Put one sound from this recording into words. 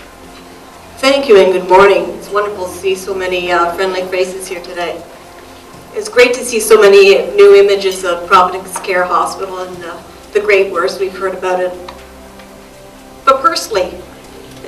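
A woman speaks calmly into a microphone, heard through a loudspeaker in a large room.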